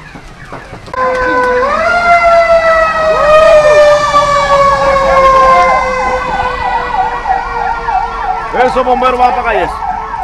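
A siren wails loudly close by.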